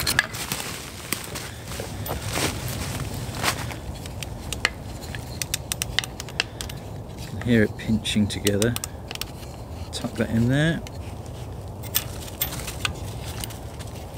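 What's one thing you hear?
A folding saw frame clicks and clatters as it is assembled.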